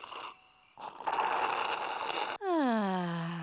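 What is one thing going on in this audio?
A woman slurps a drink through a straw.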